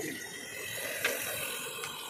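A knife chops vegetables on a wooden board.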